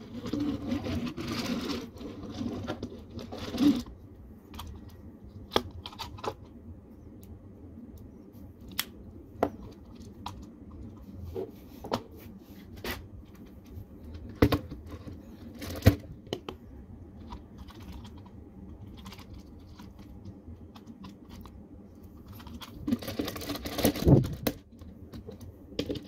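Hands rustle and handle plastic pieces.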